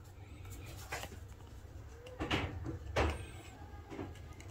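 Paper crinkles as hands handle a sticker backing.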